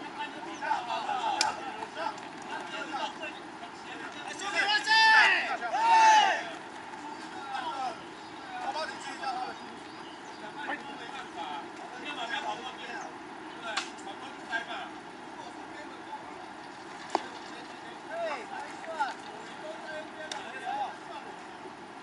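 Young men shout and cheer across an open field.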